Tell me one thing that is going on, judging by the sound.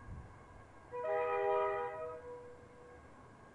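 A train horn sounds in the distance.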